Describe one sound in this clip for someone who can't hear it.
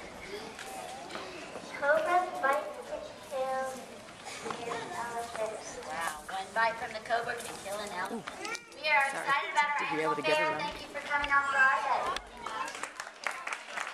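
A woman speaks through a microphone and loudspeaker outdoors.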